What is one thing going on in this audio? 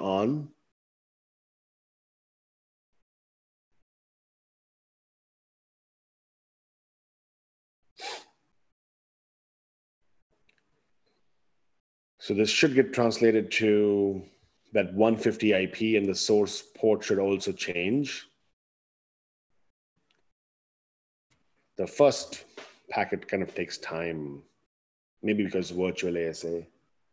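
A man speaks calmly and clearly into a close microphone, in short bursts with pauses.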